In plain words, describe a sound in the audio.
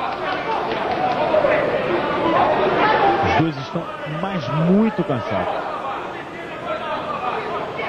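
A large crowd cheers and shouts in a big arena.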